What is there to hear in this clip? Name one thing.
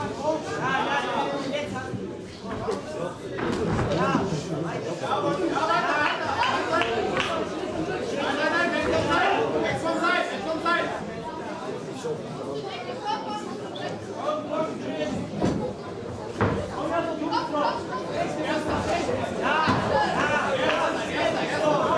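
A crowd of spectators chatters and shouts throughout a large echoing hall.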